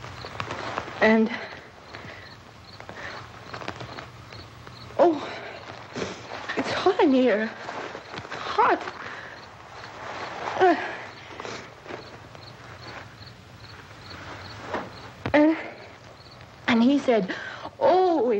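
A young woman speaks in short, halting bursts, close by.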